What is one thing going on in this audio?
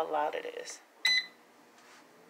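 An appliance gives a short electronic beep.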